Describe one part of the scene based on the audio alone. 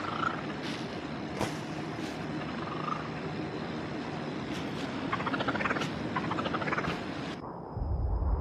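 Water laps and splashes around a small rowing boat.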